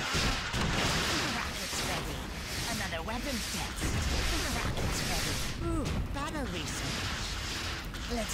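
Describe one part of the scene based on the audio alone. Buildings burst apart in loud blasts.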